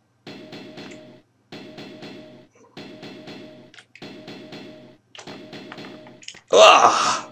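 A sharp metallic snapping repeats at a steady pace.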